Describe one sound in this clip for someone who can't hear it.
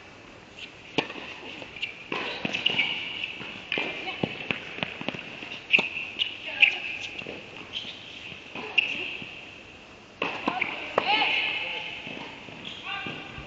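Tennis balls are struck with rackets in a rally, with sharp pops echoing in a large hall.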